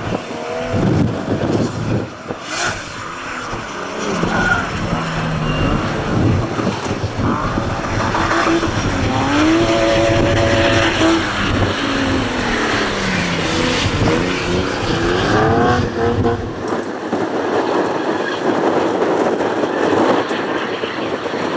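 Car engines roar and rev hard at a distance, rising and falling in pitch.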